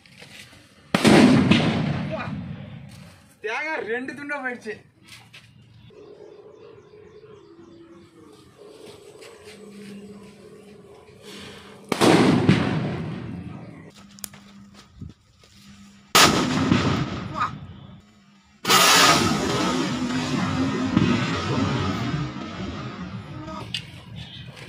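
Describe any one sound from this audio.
Loud bangs burst out with a rushing whoosh.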